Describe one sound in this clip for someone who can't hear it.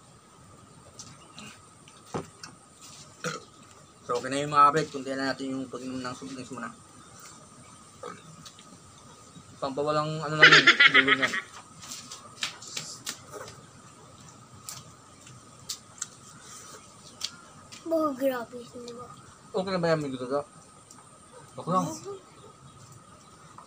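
Food crackles and squelches as hands tear and mix it.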